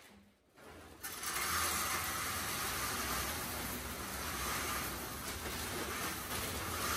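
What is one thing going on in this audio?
Wood pellets pour steadily from a bag into a bin with a rushing rattle.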